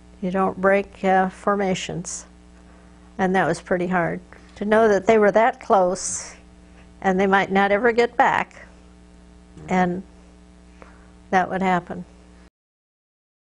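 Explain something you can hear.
An elderly woman speaks calmly and slowly, close to a microphone.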